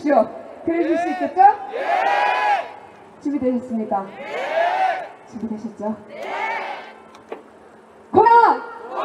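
A young woman speaks with animation through a loudspeaker microphone.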